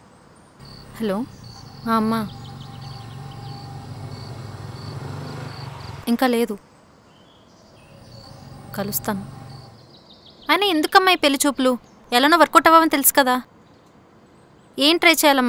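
A young woman talks on a phone, close by, in an upset voice.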